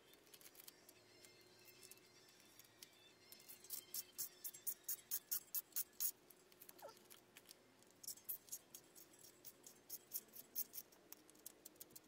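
A small metal tool clicks and scrapes against a metal part.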